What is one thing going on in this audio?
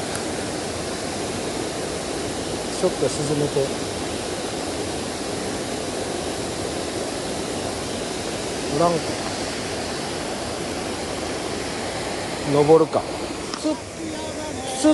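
Water rushes steadily over a low weir outdoors.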